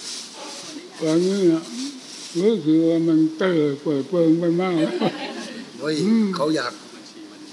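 An elderly man speaks slowly and quietly into a microphone.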